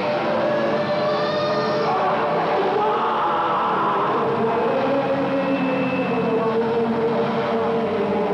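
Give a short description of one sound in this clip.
An electric guitar plays loud distorted chords.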